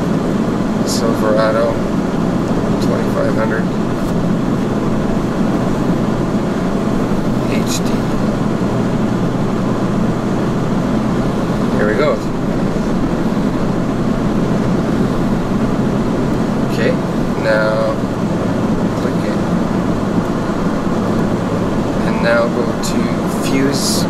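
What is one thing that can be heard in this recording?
A man talks in short bursts close by.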